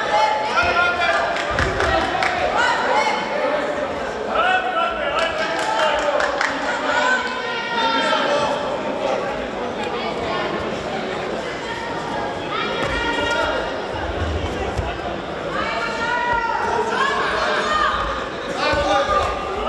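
Spectators shout in an echoing sports hall.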